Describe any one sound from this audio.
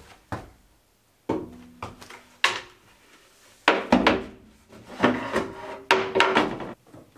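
Wooden boards knock and thud against a metal floor.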